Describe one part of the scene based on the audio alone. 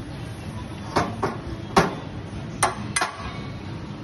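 A metal tool knocks sharply against a glass rod several times.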